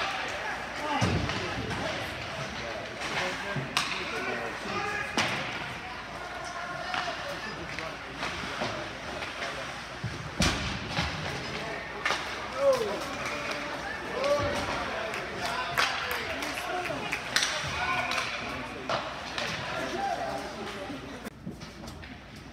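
Sticks and a puck clack sharply on the ice.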